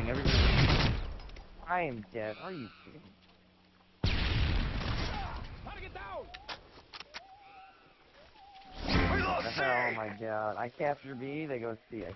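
A rifle fires in short, loud bursts.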